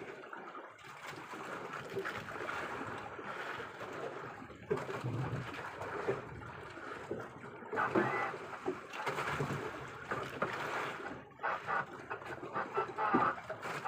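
Water splashes and laps against the side of a boat.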